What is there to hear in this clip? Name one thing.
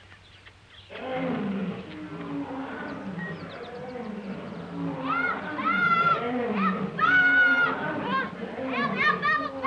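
Bears growl and roar loudly.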